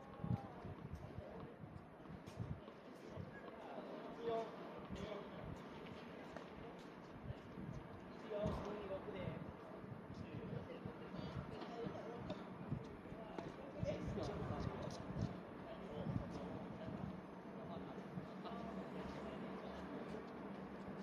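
Tennis balls are struck with rackets, with sharp pops echoing outdoors.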